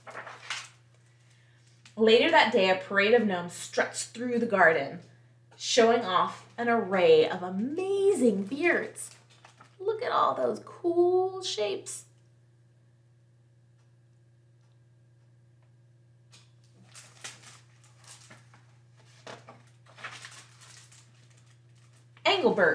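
A young woman reads aloud with animation, close to a microphone.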